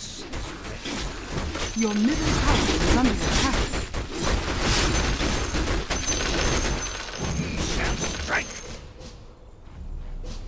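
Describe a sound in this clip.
Magic blasts and weapon strikes clash rapidly in a fantasy battle.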